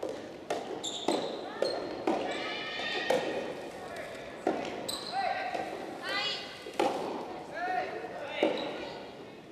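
Rackets strike a ball back and forth in a large echoing hall.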